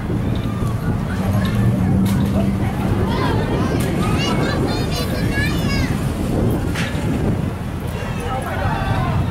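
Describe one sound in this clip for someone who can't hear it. A car engine rumbles as a car drives slowly past.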